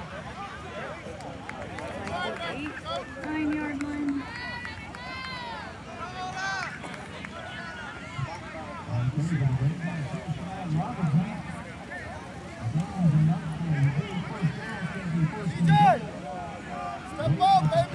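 A crowd of spectators cheers and shouts outdoors in the distance.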